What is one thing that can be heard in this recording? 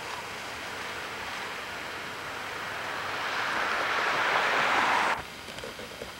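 A sled slides and hisses over snow.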